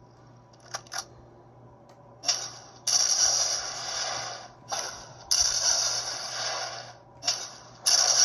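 Game explosions boom from a small loudspeaker.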